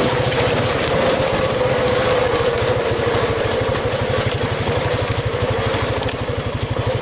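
A motorbike engine rumbles and pulses steadily up close.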